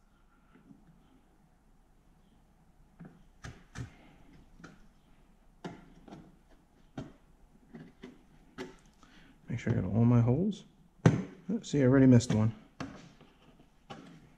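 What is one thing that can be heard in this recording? A screwdriver clicks and scrapes as screws are turned into a metal board.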